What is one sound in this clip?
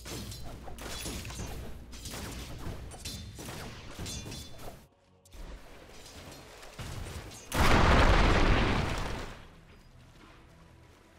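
Game combat sound effects clash and crackle, with a loud burst of impact noise.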